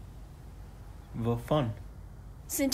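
A young man speaks briefly in a low voice nearby.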